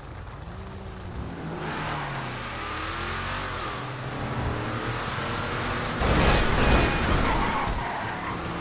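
A truck engine revs up and down.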